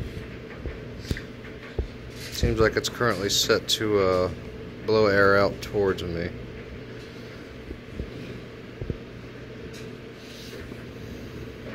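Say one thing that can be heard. Small electric fans whir with a steady low hum.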